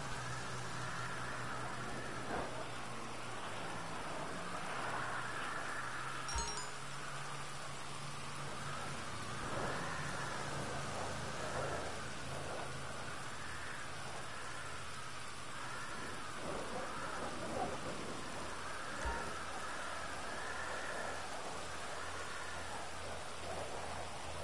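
A car engine hums as the car rolls slowly.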